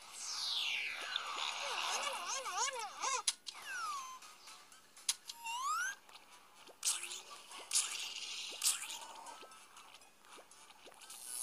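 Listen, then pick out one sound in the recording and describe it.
Bouncy, cartoonish game sound effects chime and whoosh with quickly rising and falling tones.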